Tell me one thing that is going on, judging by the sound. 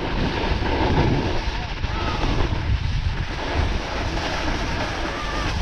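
Skis or a snowboard scrape and hiss over packed snow.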